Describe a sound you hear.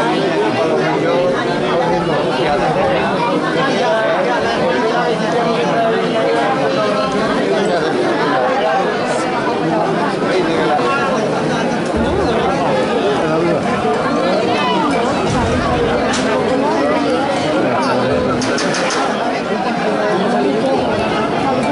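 A crowd of spectators chatters and shouts throughout.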